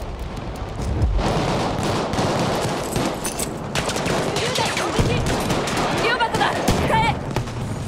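Gunshots crack rapidly.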